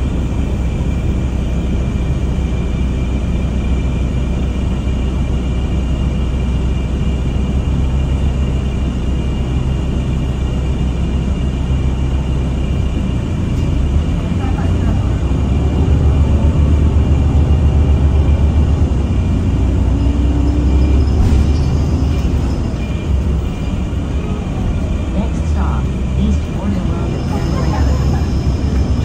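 A bus engine rumbles low and steady from inside the bus.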